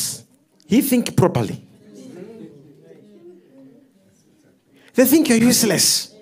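A man speaks loudly and with animation into a microphone, in bursts with pauses.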